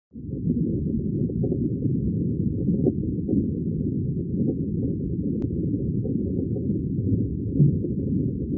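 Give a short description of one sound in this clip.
Water rumbles low and steady, heard from underwater.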